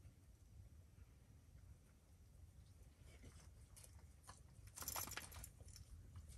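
A dog laps and eats noisily from a metal bowl.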